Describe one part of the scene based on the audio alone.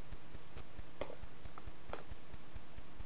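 A plastic cap clicks open.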